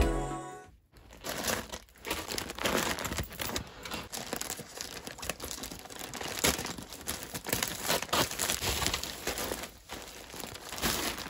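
Plastic packaging crinkles and rustles.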